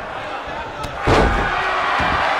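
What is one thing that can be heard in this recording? A heavy body slams down onto a wrestling mat with a thud.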